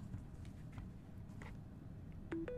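A phone clicks softly into a charging dock.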